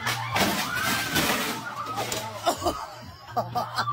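A person splashes into a pool of water.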